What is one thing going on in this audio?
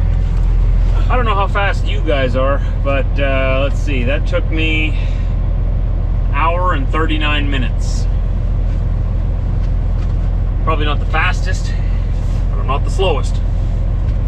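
A man talks casually and close by.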